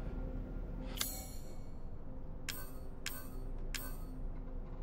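Short menu clicks sound several times.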